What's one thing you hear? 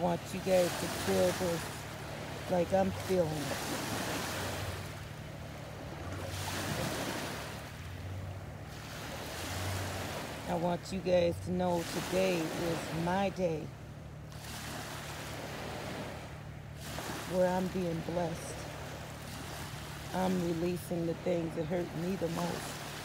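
Small waves lap against a boat's hull.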